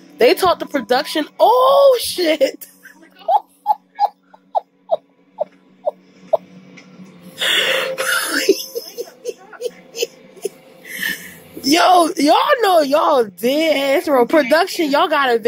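A woman cries out and groans with effort close by.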